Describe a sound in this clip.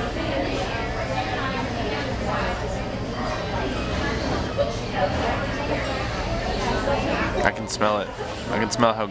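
Many voices murmur in the background of a busy room.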